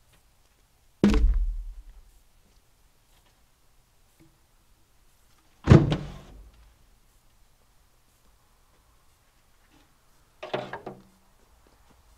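Heavy logs drop from a truck and thud hard onto the ground.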